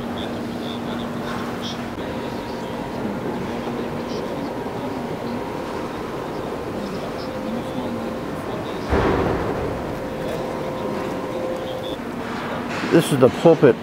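Men and women murmur quietly in a large echoing hall.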